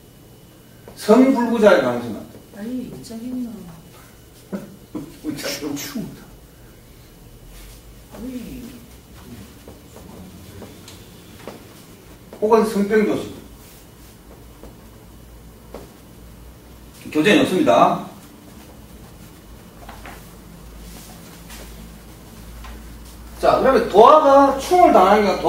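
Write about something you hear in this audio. A middle-aged man speaks calmly in short bursts, nearby in a small room.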